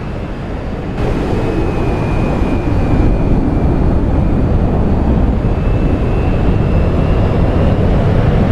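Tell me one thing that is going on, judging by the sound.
A jet engine roars louder from close by.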